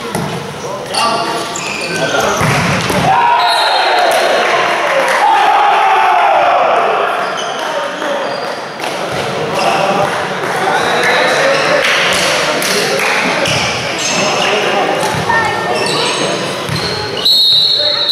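Young men shout and cheer loudly across an echoing hall.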